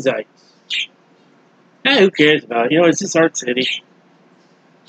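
A man speaks calmly and closely into a microphone, in short bursts.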